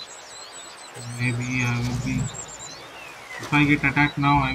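A duck quacks on the water nearby.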